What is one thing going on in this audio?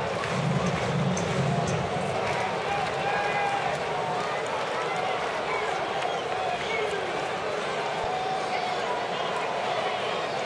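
A large crowd murmurs and chatters steadily in an open stadium.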